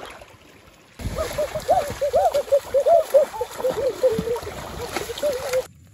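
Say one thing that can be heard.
Water splashes as fish thrash in the shallows.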